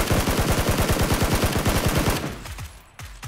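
An automatic rifle fires a rapid burst of shots.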